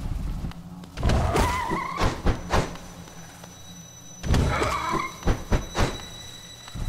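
Sharp slashing hits land in quick bursts.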